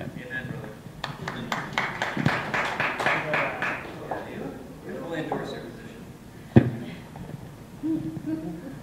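A crowd of people chatters and laughs.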